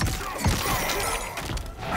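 Icy magic crackles and whooshes.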